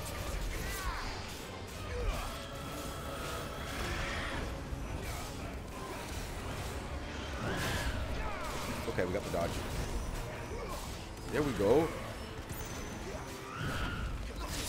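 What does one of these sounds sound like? A man with a headset talks with animation close to a microphone.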